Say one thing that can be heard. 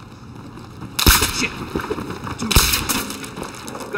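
Gunshots crack loudly in an echoing room.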